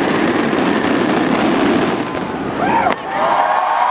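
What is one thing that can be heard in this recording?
Fireworks burst and crackle loudly overhead.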